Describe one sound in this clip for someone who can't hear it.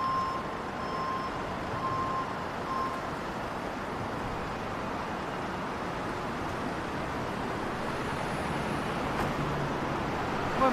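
Street traffic hums steadily in the background.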